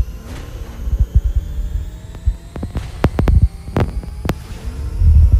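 Video game gunfire crackles in quick bursts.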